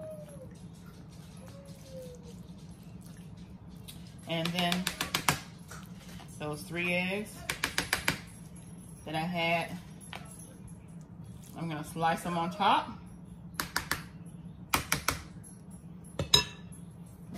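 A plastic spoon scrapes through potato salad and clicks against a foil pan.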